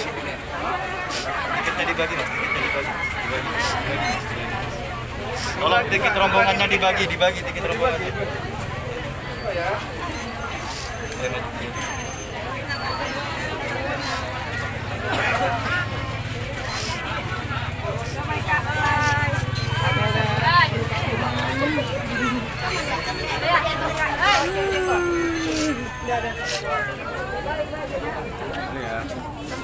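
A crowd of men and women chatters and calls out loudly all around, outdoors.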